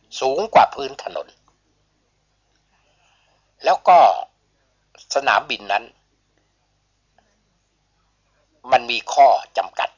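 A woman speaks calmly in short phrases, close to a microphone.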